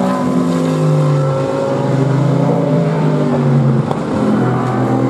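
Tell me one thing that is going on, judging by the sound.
A twin-turbo V6 race car engine roars as it accelerates away.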